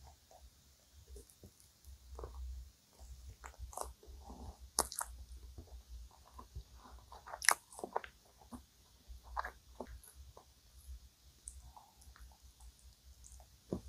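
A young woman bites into soft pastry close to a microphone.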